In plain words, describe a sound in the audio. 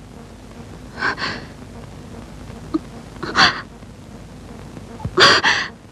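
A young woman gasps and sobs in distress close by.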